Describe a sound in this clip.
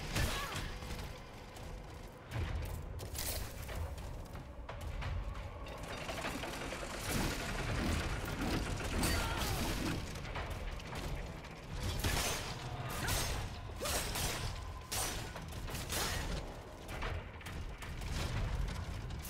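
Swords clash and clang sharply.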